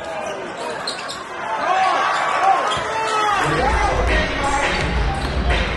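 A large crowd cheers and murmurs in an echoing gym.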